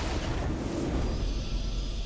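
A triumphant victory fanfare sounds.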